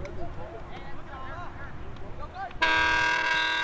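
Young men shout to each other across an open field, far off.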